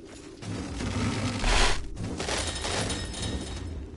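A heavy impact booms with a burst of noise.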